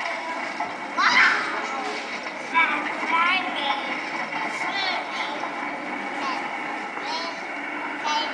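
A young child vocalises and squeals excitedly close by.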